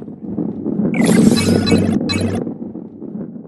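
Coins chime brightly as they are collected.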